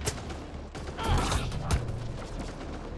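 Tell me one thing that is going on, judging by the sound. A crackling energy blast bursts close by.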